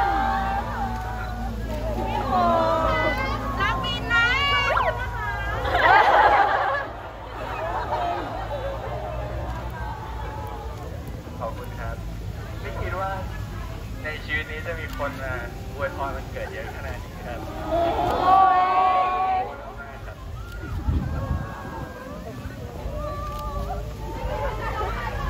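A young man talks loudly and cheerfully through a megaphone, outdoors.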